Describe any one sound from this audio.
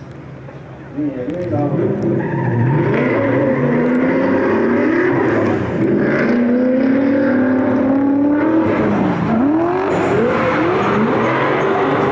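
Car engines roar and rev hard.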